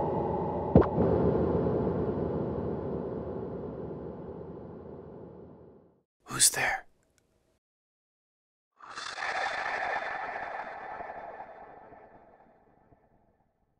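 A processed electronic sound rings out and slowly fades, then returns with a brighter shimmering tail.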